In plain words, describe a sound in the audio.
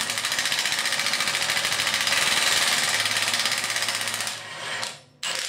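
A cordless impact wrench whirs loudly with a rapid hammering rattle.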